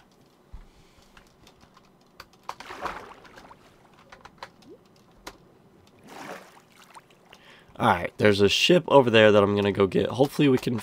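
Water splashes softly as a swimmer moves through it.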